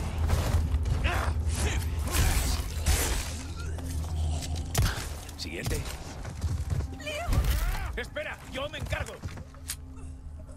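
Blows land hard in a close fight.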